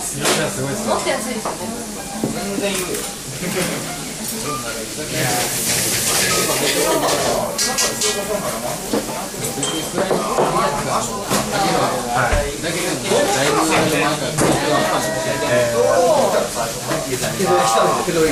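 A crowd of men and women chatter in a busy, lively room.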